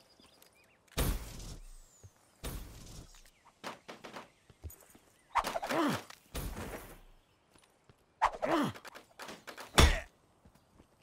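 Gunshots crack out in short bursts.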